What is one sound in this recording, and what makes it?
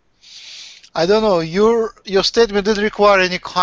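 An elderly man speaks with animation over an online call.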